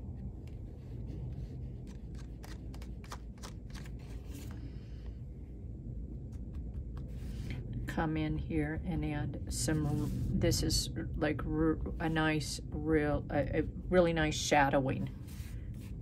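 A foam ink dauber taps softly on paper.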